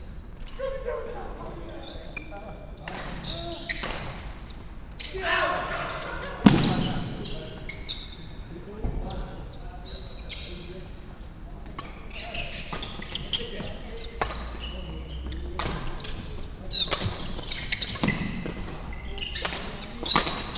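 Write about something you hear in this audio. Shoes squeak on a wooden court floor.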